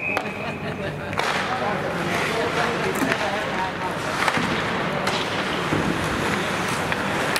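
Young men shout to each other in a large echoing rink.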